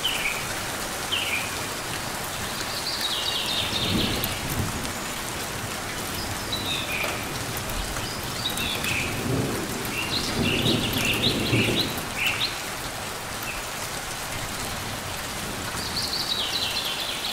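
Light rain patters steadily outdoors.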